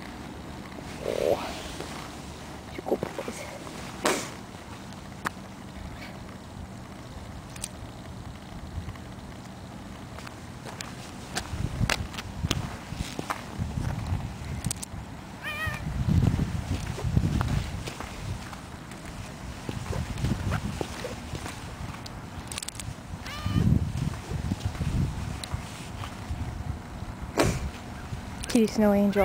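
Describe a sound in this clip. A cat's paws pad on thin snow.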